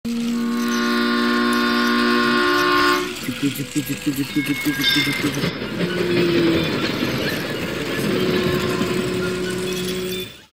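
A small toy train motor whirs as it rolls along plastic track.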